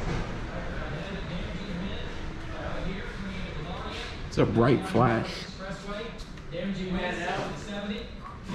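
Footsteps walk across a hard wooden floor.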